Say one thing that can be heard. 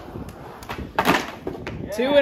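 A skateboard clatters onto concrete.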